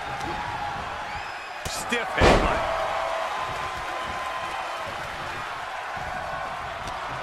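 A crowd cheers and murmurs steadily in a large arena.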